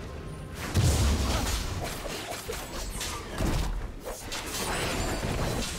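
Video game combat sound effects thud and clash in quick bursts.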